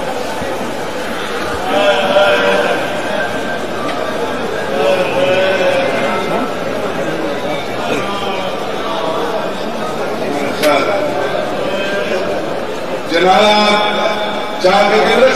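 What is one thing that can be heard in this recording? A large crowd of men chants loudly.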